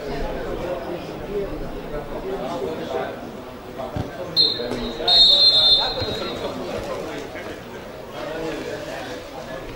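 Players and spectators call out and chatter in the distance.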